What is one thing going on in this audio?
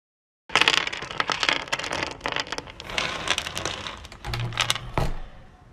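Plastic capsules pour down and rattle against each other in a dense clatter.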